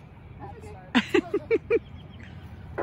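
A young boy laughs in short bursts nearby.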